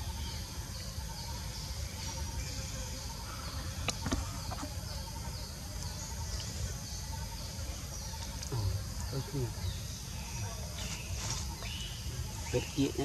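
A baby macaque chews and slurps soft, juicy fruit.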